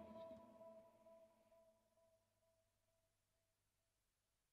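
An electric guitar chord rings out and slowly fades.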